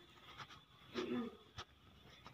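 A young goat bleats.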